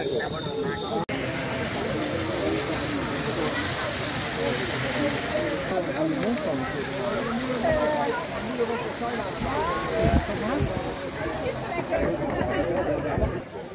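A model train rumbles along its track.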